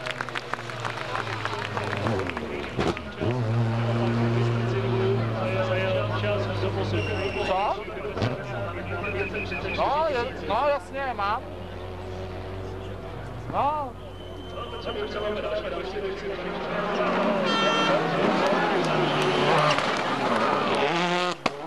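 A rally car engine roars and revs hard.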